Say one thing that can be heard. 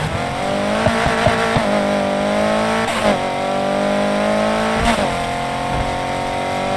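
A racing car engine roars loudly, revving up and shifting gears.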